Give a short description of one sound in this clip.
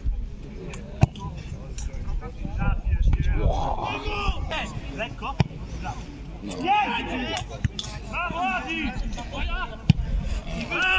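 A football is kicked with sharp thumps.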